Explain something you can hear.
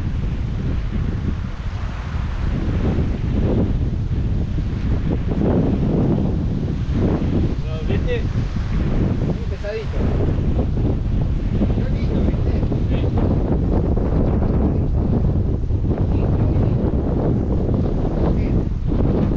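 Wind blows outdoors, rumbling steadily.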